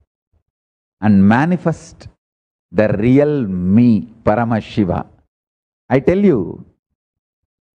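A man speaks calmly into a microphone, in short phrases with pauses.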